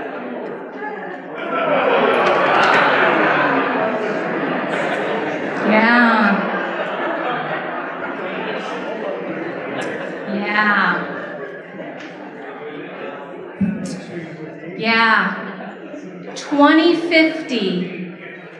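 A woman speaks calmly into a microphone, heard through loudspeakers in an echoing room.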